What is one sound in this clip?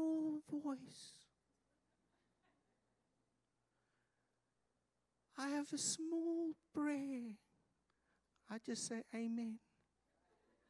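A man speaks with feeling into a microphone, in short phrases with long pauses.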